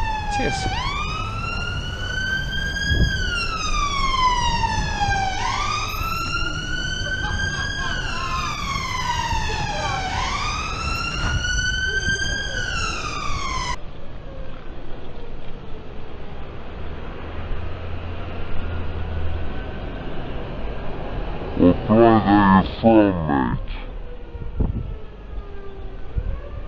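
Cars drive past on a busy street.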